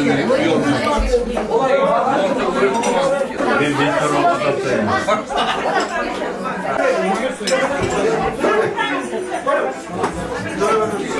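Several men and women chat and talk over one another nearby.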